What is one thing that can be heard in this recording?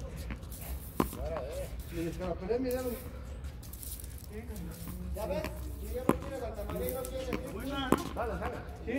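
A ball smacks sharply against a wall outdoors.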